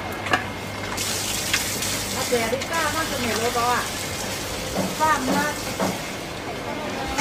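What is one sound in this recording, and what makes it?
Water hisses from a hose spraying onto a tiled floor.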